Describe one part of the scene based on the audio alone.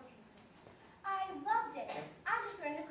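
A young girl sings out loudly in a high voice.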